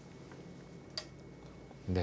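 A game stone clicks down onto a wooden board.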